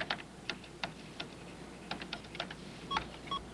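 Keys clack in quick bursts.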